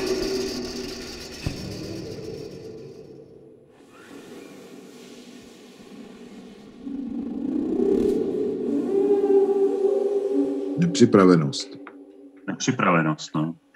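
A trombone plays sustained notes.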